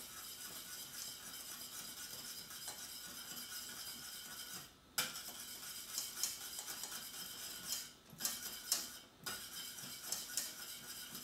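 A wire whisk scrapes and clinks against a metal saucepan.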